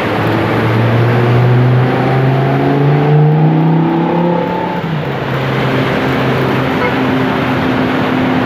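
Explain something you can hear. Tyres hiss steadily on a wet road.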